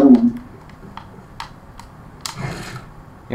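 Wooden pieces snap into place with short, sharp clicks.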